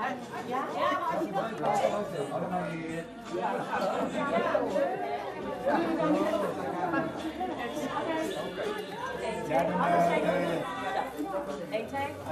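Women laugh and talk cheerfully close by.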